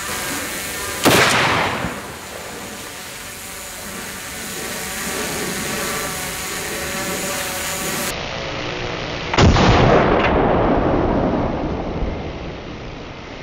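A loud explosion booms outdoors and echoes away.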